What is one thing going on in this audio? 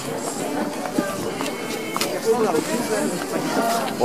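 Footsteps of passersby tap on a pavement.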